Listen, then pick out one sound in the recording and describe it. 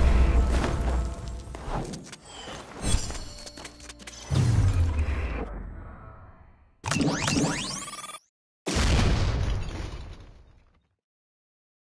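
Magical blades whoosh and clash with bursts of sparkling effects.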